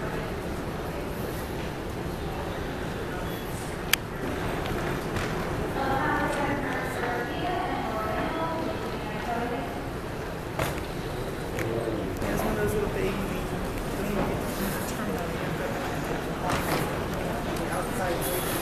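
A large indoor hall hums with a steady echoing murmur of distant crowd chatter.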